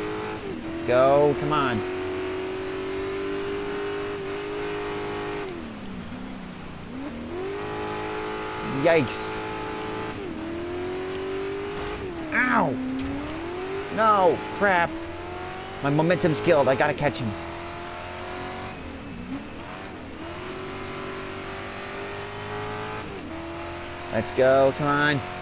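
Tyres splash and skid through wet mud.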